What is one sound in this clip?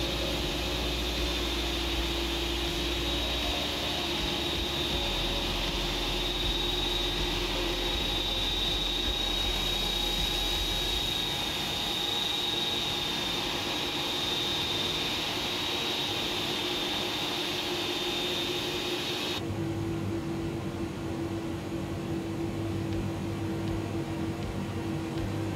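A jet engine hums steadily, with a high whine.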